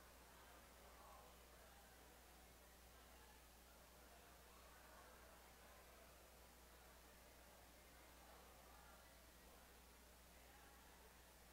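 A crowd of adults chats quietly in a large echoing hall.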